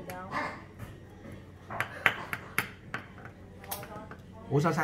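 A knife chops on a wooden board in quick knocks.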